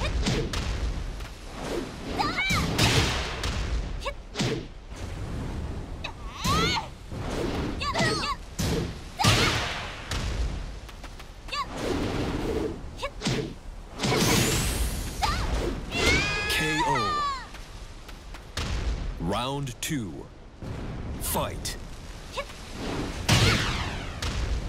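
Heavy punches and kicks land with sharp thuds and crackling blasts.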